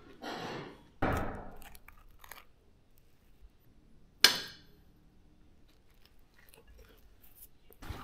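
A knife scrapes across toast.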